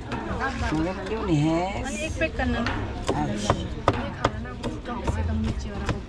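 A knife chops on a cutting board in quick taps.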